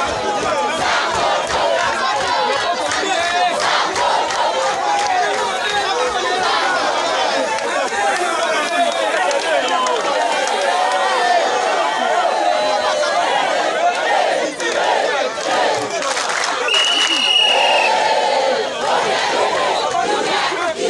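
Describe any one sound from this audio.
A large outdoor crowd chatters and shouts loudly.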